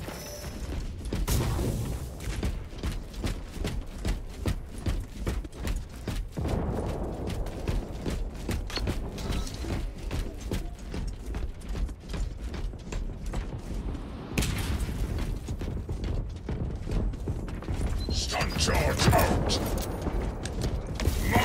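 Heavy armoured footsteps clank steadily on stone.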